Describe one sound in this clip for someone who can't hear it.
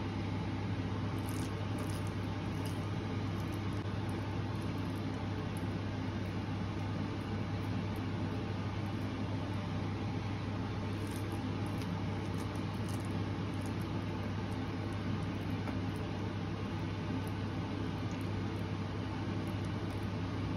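Hands squish and knead a soft, wet mixture in a metal bowl.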